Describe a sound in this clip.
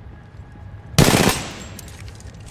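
A pistol is picked up and readied with a sharp metallic clack.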